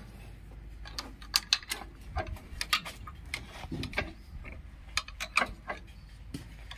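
A screwdriver scrapes and clinks against metal parts.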